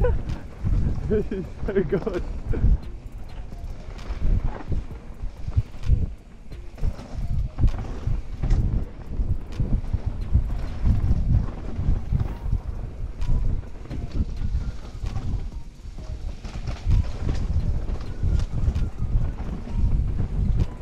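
A mountain bike rattles and clatters close by over roots and rocks.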